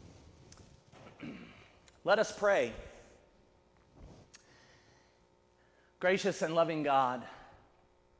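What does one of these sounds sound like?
A man speaks slowly, his voice echoing in a large hall.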